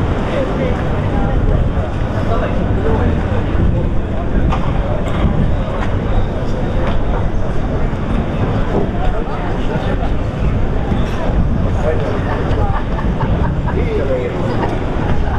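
A crowd of people chatters in the distance outdoors.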